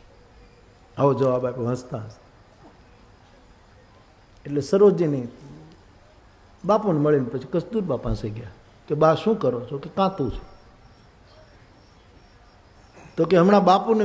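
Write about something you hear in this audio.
An elderly man speaks through a microphone in short, expressive phrases with pauses between them.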